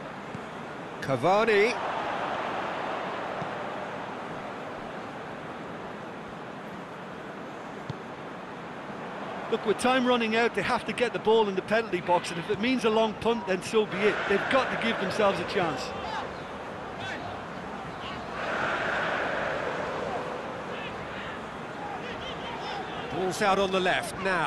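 A stadium crowd roars and murmurs, swelling and fading in waves.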